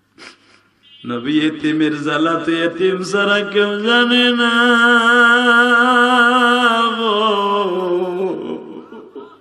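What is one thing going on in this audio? A man chants in a long, wavering sung tone through a microphone and loudspeakers.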